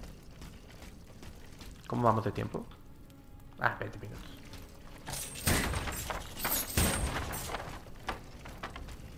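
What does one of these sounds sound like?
Footsteps splash through shallow water on stone.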